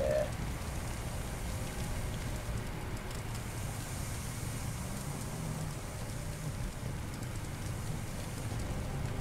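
A fire extinguisher hisses as it sprays.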